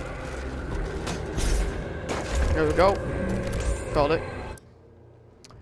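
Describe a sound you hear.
Heavy weapon fire booms and crackles.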